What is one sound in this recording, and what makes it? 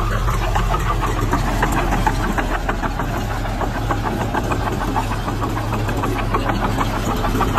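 Metal tracks clank and squeak as a crawler tractor moves.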